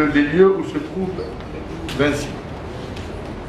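A middle-aged man speaks calmly and closely into a handheld microphone.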